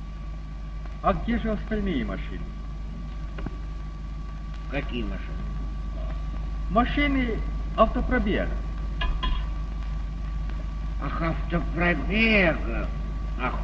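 An elderly man speaks with animation and exclaims, through an old, humming soundtrack.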